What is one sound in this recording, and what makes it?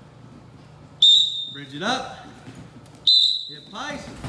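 A wrestler's body thumps and squeaks against a mat.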